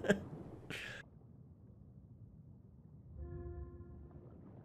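Water rumbles in a muffled way underwater.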